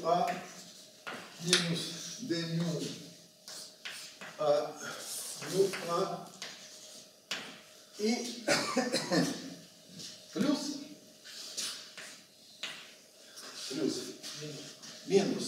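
An elderly man speaks calmly, lecturing in a room with some echo.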